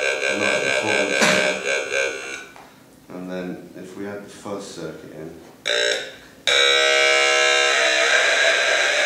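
A small handheld electronic gadget buzzes and whines with shifting, warbling tones.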